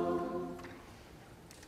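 A large choir holds a final chord that rings out in a large hall.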